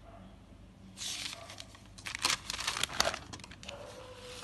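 A paper page rustles and flips as it is turned.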